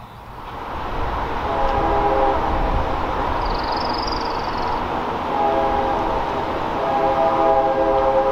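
A train horn blows loudly in the distance, in long blasts.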